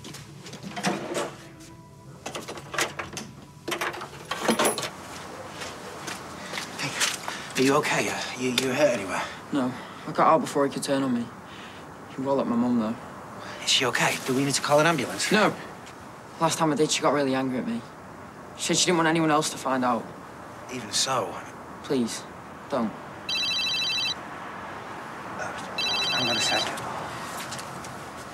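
A teenage boy answers quietly.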